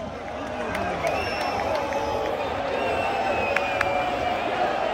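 Spectators whistle shrilly.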